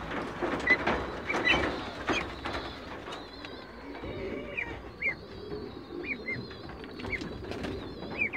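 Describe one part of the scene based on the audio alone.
Ducklings shuffle and patter on a wire floor.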